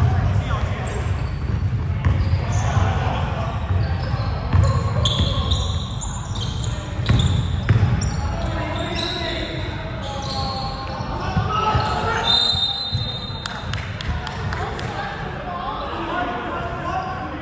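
A basketball thumps as it bounces.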